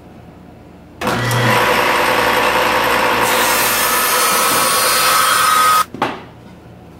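A table saw whines loudly as it cuts through wood.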